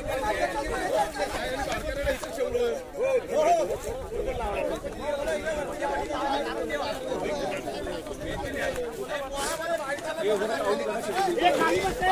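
A crowd of men shouts and cheers outdoors.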